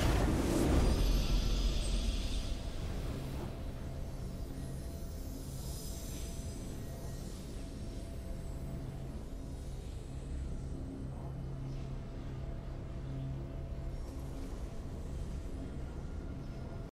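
Triumphant game music swells.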